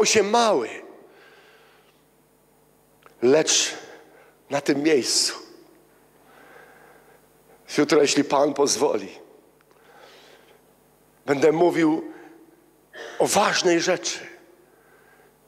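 A man speaks with animation into a microphone in a reverberant hall, pausing between phrases.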